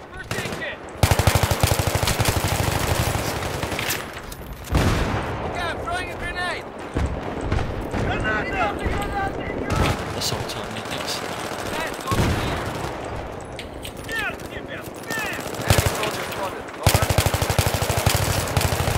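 Rapid bursts of automatic gunfire rattle loudly.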